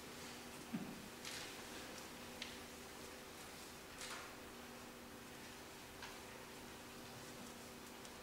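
Stringed instruments hold soft steady notes in an echoing hall.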